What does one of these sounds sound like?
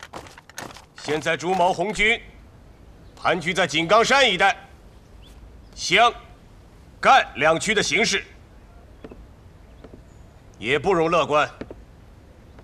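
A man speaks in a firm, measured voice.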